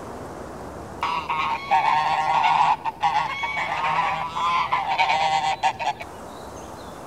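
Geese honk and cackle close by.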